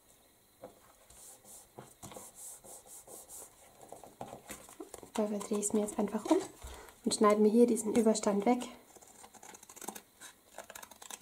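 Stiff paper rustles and slides on a mat.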